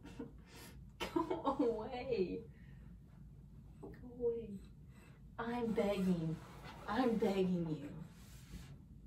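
A young woman talks playfully nearby.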